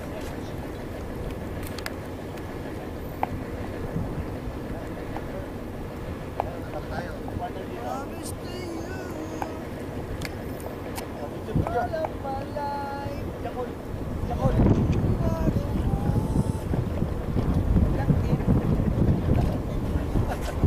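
Shallow sea water splashes around wading people.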